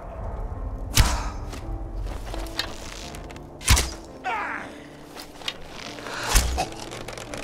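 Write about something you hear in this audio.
A bow string snaps sharply as arrows are loosed.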